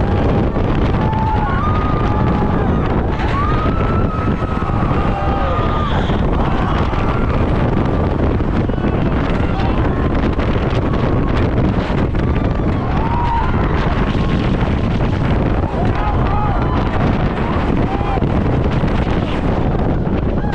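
Men shout and scream excitedly.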